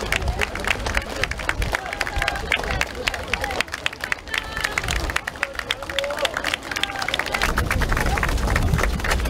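A crowd of men and women call out and cheer.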